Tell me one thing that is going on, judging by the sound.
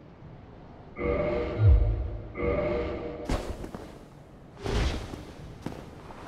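A heavy axe swooshes through the air with a deep thud.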